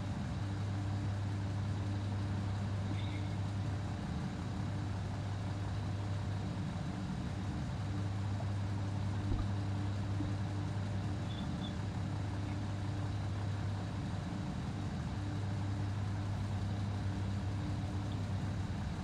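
A diesel train engine hums and throbs steadily at idle.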